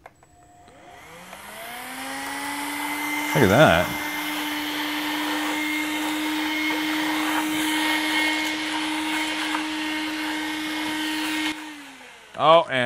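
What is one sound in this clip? A handheld vacuum cleaner whirs up to a steady high hum, then winds down.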